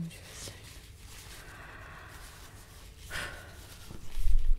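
Fabric rustles and brushes right against a microphone.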